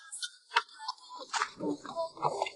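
A metal jack stand clicks and clanks as it is adjusted.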